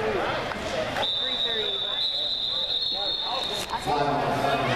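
A referee's whistle blows a long shrill blast.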